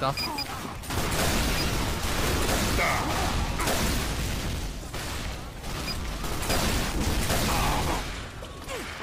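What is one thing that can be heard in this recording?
Rockets fire with a whoosh and explode with loud bangs.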